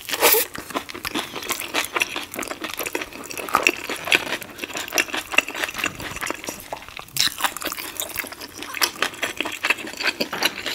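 Fingers squish and scrape sticky sauce inside a glass bowl close to a microphone.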